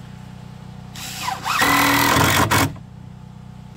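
A cordless drill drives a screw into wood.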